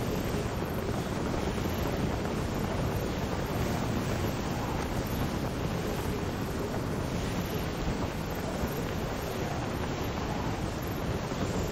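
Wind rushes steadily past a gliding flyer.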